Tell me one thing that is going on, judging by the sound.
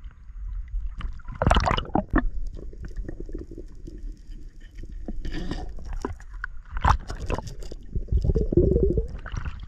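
Water sloshes and splashes around a diver at the surface.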